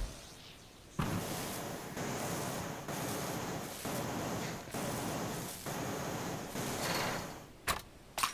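A cutting torch hisses and crackles against metal in a steady rush.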